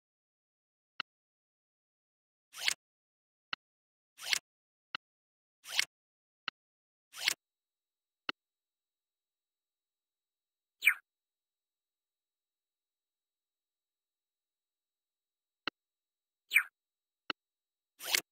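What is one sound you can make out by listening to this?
Short game sound effects chime and pop now and then.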